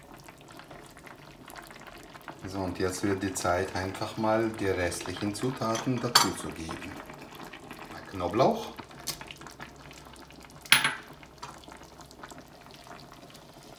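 A spatula scrapes and stirs inside a metal pot.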